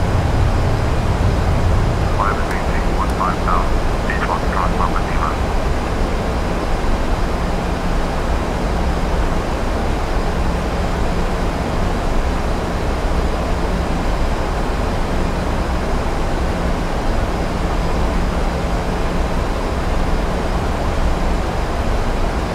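Jet engines roar steadily with a constant rushing of air.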